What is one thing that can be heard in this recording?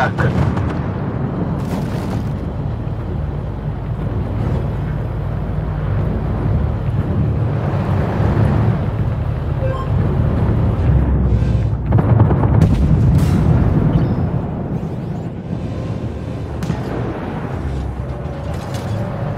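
A tank engine rumbles steadily while the tank drives.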